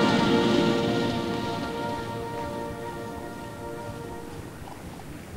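A brass band holds a loud chord outdoors that slowly fades away.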